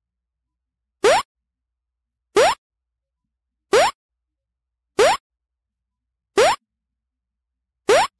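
A short rising blip sounds each time a ball hops onto a tile.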